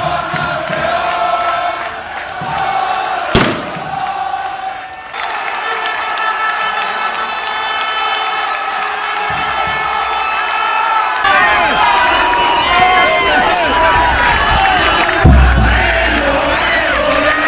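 A large crowd sings and chants loudly outdoors.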